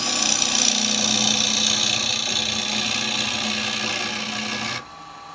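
A chisel cuts into spinning wood with a steady, hissing scrape.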